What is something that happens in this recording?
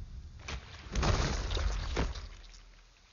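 A body slams heavily onto wet ground.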